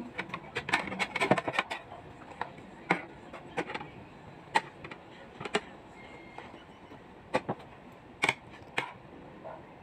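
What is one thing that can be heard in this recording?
A spoon scrapes and clinks against a bowl of rice.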